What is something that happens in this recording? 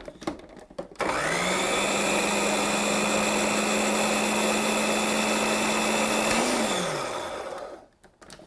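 A food processor motor whirs loudly, then winds down.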